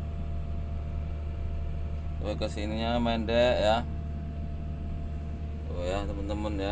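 A heavy diesel engine idles with a steady low rumble.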